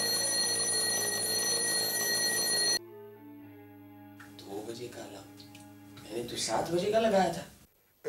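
A man fiddles with a small metal tin.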